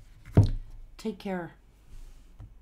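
A woman speaks calmly close to a microphone.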